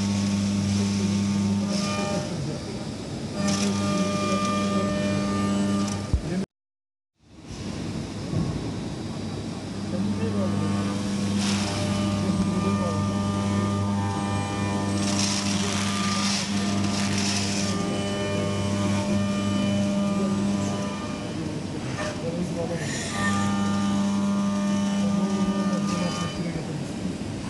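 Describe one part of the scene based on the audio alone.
A milling machine whines steadily as its cutter grinds through metal.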